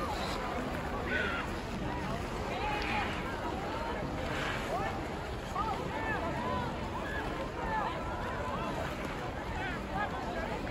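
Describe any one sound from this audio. Ice skates scrape and glide on ice.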